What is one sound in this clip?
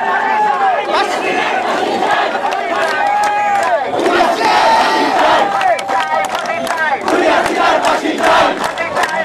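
A young woman shouts slogans loudly.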